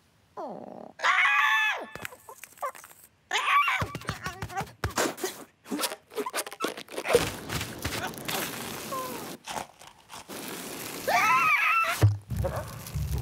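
A cartoon bird squawks shrilly.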